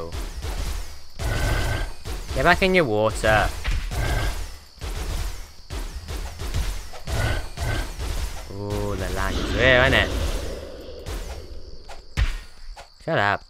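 Sword blows land in quick, sharp hits.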